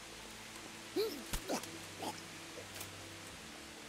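Fists strike a body with heavy thuds.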